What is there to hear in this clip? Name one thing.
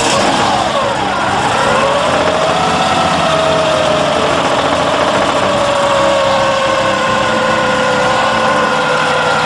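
A small engine runs loudly close by, its whine dipping and then steadying.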